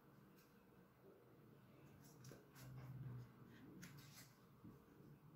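Stiff card rustles and taps softly as hands handle it.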